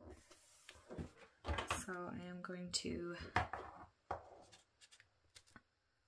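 Paper rustles softly as a hand presses on a sticker.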